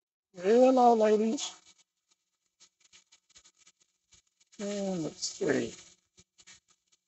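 An elderly man speaks calmly and close by, in short phrases.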